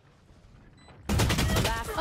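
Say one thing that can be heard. A gun fires a burst of rapid shots.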